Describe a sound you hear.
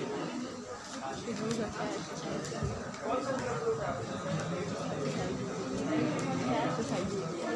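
A man speaks in a lecturing voice.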